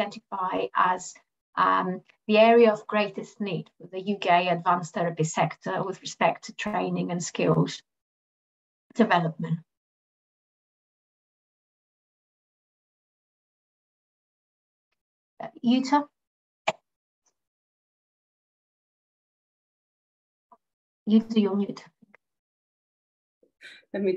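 A middle-aged woman speaks calmly over an online call, pausing at times.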